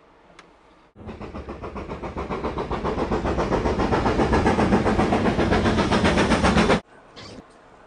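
A steam locomotive chugs with a fast, steady beat that grows louder.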